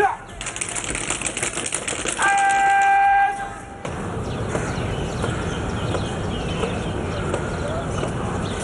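Boots stamp in step as guards march.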